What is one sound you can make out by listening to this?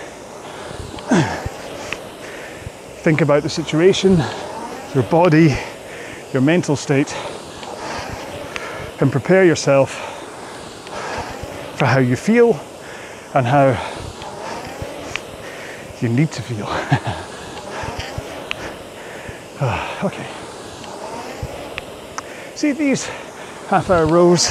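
A man speaks calmly and clearly, close to the microphone.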